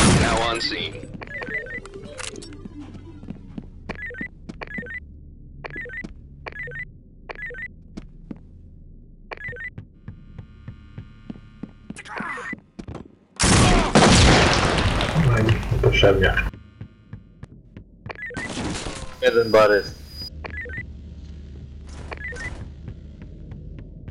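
Footsteps thud steadily on a hard floor.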